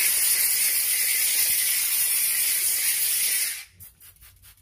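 A steam cleaner hisses loudly in a steady jet.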